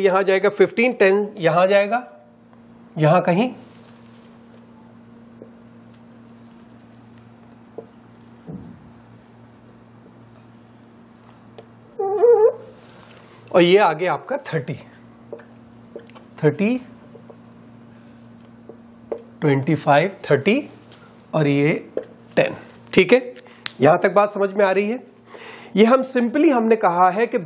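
A man speaks calmly and clearly into a close microphone, in short bursts with pauses.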